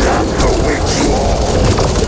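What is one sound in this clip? Energy weapon blasts fire rapidly, crackling and booming.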